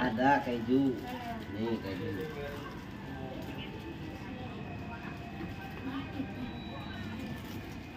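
Plastic bags rustle as they are handled.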